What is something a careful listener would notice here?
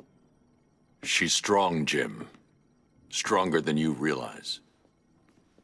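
A man speaks in a low, gruff voice, close by.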